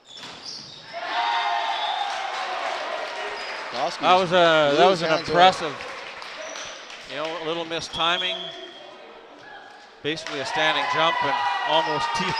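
A crowd cheers and claps in an echoing gym.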